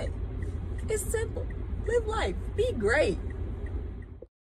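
A young woman speaks cheerfully and close up.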